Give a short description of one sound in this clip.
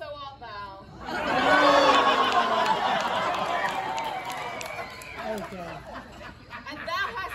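A group of voices sings together.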